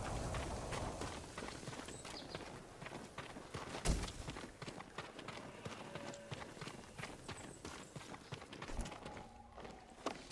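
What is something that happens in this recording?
Footsteps crunch quickly on damp ground.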